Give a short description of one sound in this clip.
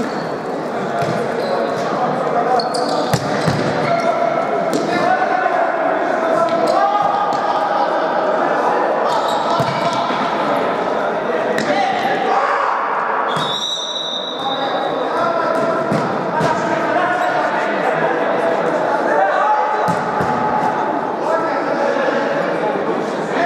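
Players shout and call to each other across a large echoing hall.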